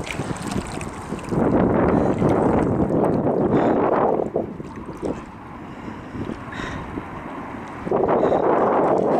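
Choppy river water laps and splashes against a kayak.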